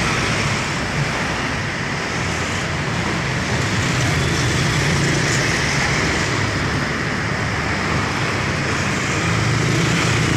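Motorbike engines buzz past one after another.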